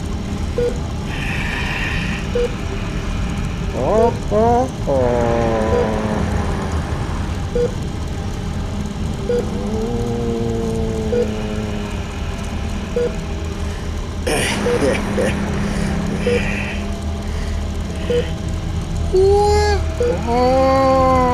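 A small electric fan whirs steadily.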